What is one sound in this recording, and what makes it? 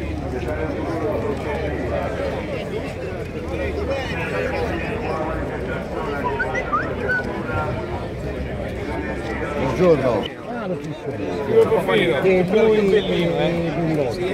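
A crowd of men chatter all around outdoors.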